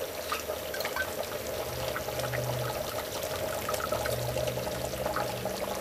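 A ladle stirs and scrapes against a metal pot.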